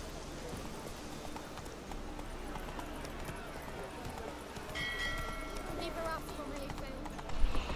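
Horse hooves clop on a hard road.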